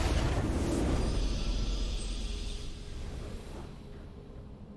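A triumphant game victory fanfare swells and slowly fades.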